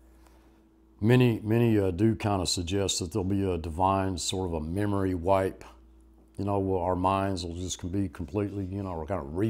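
An elderly man speaks with animation close to a microphone.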